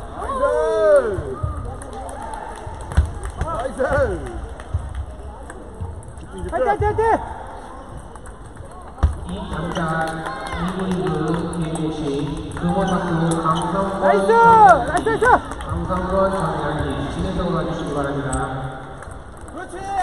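Ping-pong balls click off paddles and tables in a large echoing hall.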